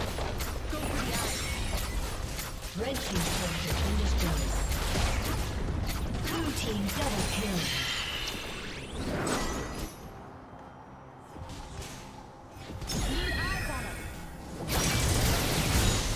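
Game spell effects whoosh, crackle and explode in a fast battle.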